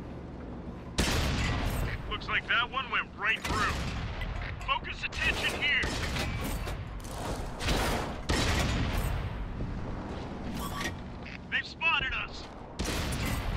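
A tank cannon fires with loud booms.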